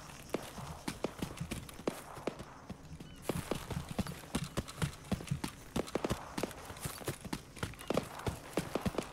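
Footsteps run quickly over dry, gravelly ground.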